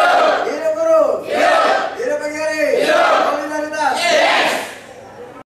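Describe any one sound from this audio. A group of men and women chant loudly in unison.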